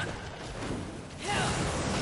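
Flames roar and crackle as a fiery warrior swings a weapon.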